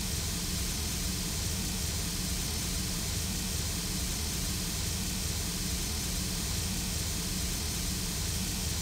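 A steam locomotive idles with a steady hiss and low rumble.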